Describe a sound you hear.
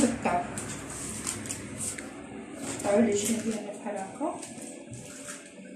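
Paper crinkles and rustles.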